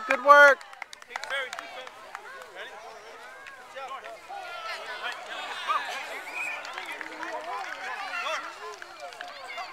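Young children chatter and call out on the field.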